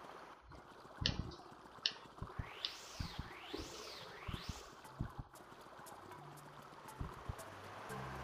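Cartoon footsteps patter quickly on a hard floor.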